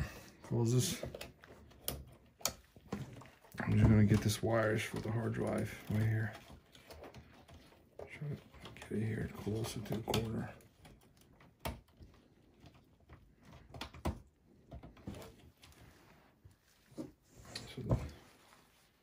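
Plastic and metal parts click and clatter as they are handled.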